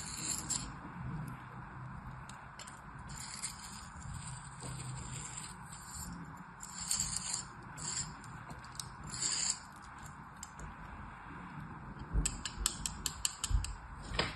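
A knife blade scrapes softly through packed sand.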